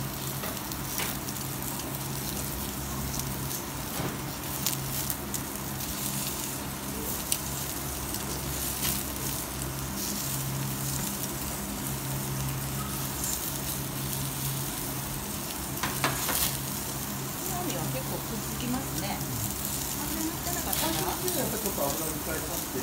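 Metal tongs click against a grill grate.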